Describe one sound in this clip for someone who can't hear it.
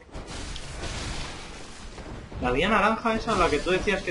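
A blade slashes and strikes flesh with a wet thud.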